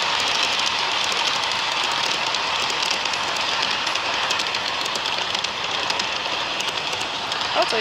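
Wheels click over rail joints in a quick, uneven patter.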